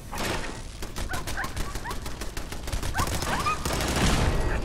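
Robots make chirping electronic beeps.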